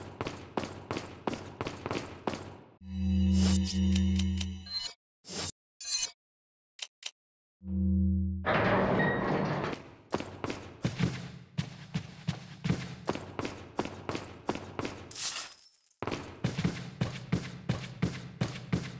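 Footsteps walk steadily on a hard floor.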